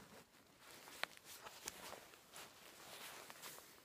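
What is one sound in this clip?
Fabric of a jacket rustles and scrapes up close.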